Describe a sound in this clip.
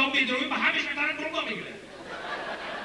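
A middle-aged man sings into a microphone, heard through loudspeakers.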